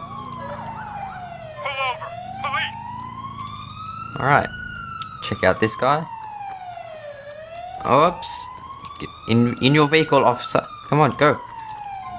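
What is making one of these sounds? A siren wails, slowly rising and falling in pitch.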